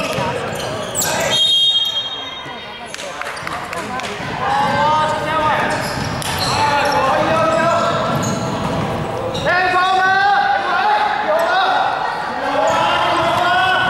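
Sneakers squeak on a wooden court in a large echoing hall.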